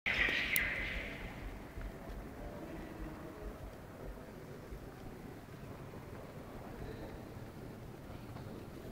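Footsteps echo on a hard floor in a large hall.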